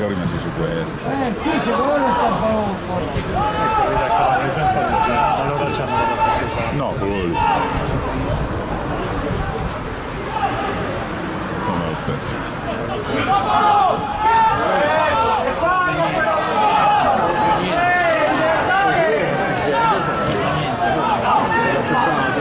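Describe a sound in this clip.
A crowd murmurs and calls out from stands outdoors.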